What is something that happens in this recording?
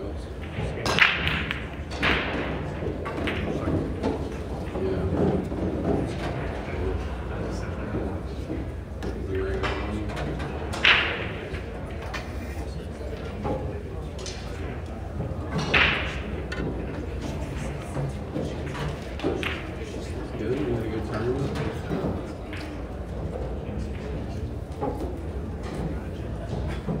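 A crowd murmurs quietly in a large room.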